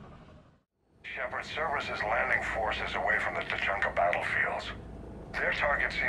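A middle-aged man speaks firmly over a crackling radio call.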